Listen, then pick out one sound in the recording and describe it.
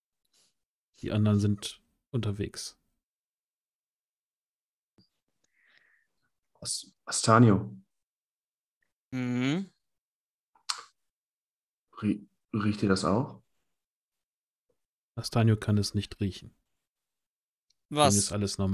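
A man speaks with animation over an online call, in short bursts with pauses.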